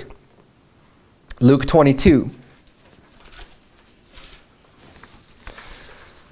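Pages rustle as a man turns them.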